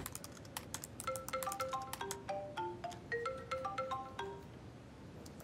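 A mobile phone plays a short ringing tune.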